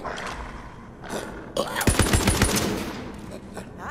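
A gun clanks and rattles as it is drawn and readied.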